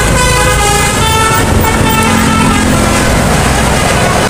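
A bus horn plays loud musical tones close by.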